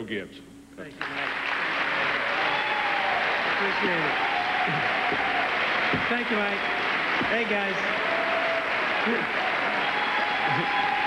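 A large crowd applauds and cheers loudly.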